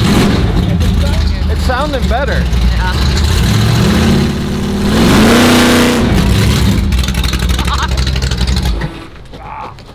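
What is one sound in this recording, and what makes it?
A loud car engine idles with a deep, lumpy rumble close by.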